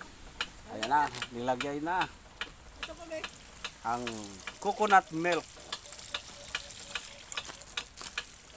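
Liquid trickles through a strainer and splashes onto food in a metal bowl.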